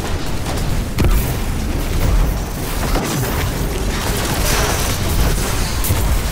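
Explosions boom loudly.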